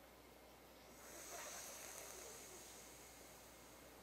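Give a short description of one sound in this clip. A woman breathes out slowly and audibly.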